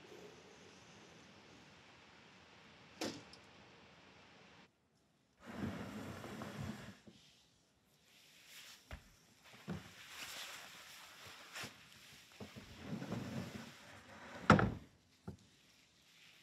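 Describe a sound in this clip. Silk fabric rustles as a woman moves.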